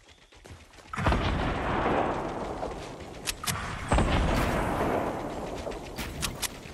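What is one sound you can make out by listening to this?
Video game building sounds thud and crash as walls go up.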